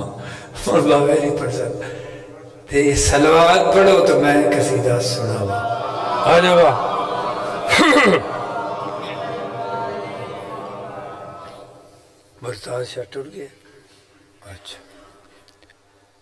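A man sings loudly and passionately into a microphone, with his voice ringing through loudspeakers and a strong echo.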